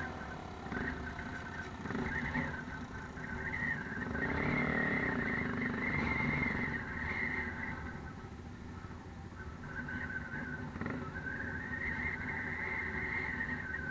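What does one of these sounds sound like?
Motorcycle engines rumble and rev close by.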